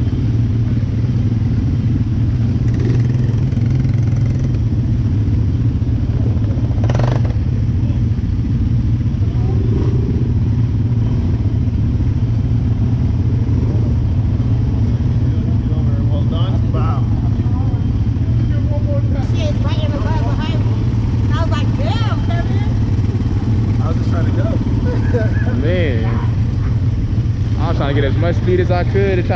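An all-terrain vehicle engine idles and rumbles steadily close by.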